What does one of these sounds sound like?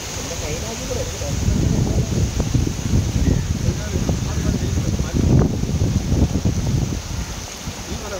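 Water splashes as a net is dragged through a shallow stream.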